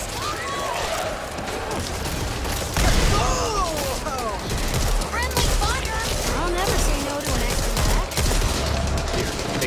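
Zombies snarl and shriek.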